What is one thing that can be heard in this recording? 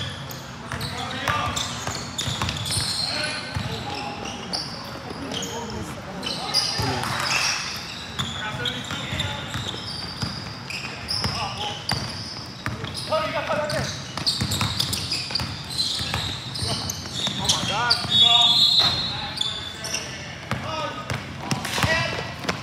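Young men call out to each other across a large echoing gym.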